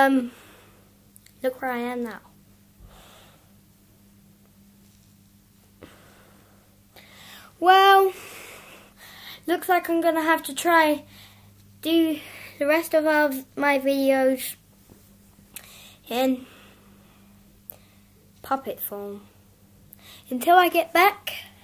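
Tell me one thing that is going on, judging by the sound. A man speaks in a playful puppet voice close by, in short animated bursts.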